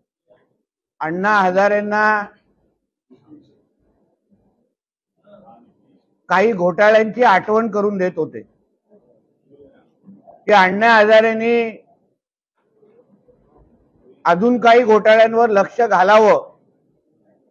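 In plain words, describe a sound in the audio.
A man speaks calmly into microphones, in short bursts with pauses.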